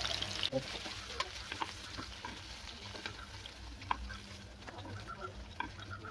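Metal tongs clink against a metal plate.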